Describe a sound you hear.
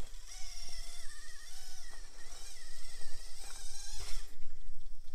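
A small electric motor whines, rising and falling in pitch.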